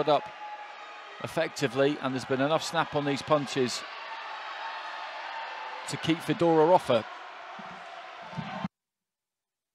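A large indoor crowd murmurs and cheers in an echoing arena.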